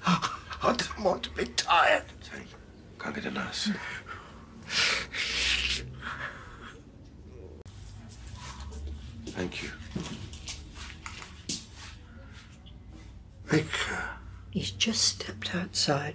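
An elderly man groans and speaks weakly, close by.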